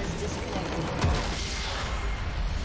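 A large structure explodes with a heavy boom.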